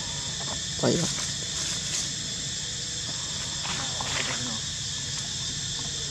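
Dry leaves rustle as monkeys move over the ground.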